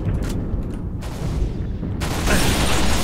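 Energy weapon shots crackle and hit nearby.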